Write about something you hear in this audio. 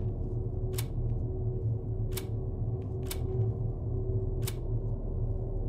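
A combination lock dial clicks into place several times.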